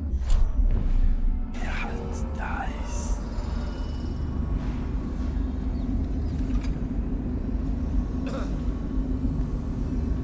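Footsteps tread softly on metal grating.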